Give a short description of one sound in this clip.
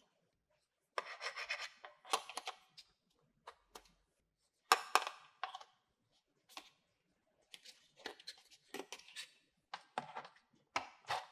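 Hard plastic pieces click and clatter as they are handled.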